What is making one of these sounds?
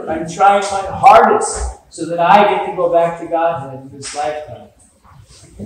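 An elderly man speaks with animation in a large echoing hall.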